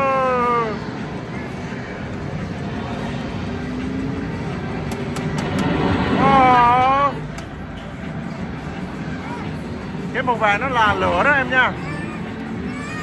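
An arcade racing game blares roaring engine sounds through loudspeakers.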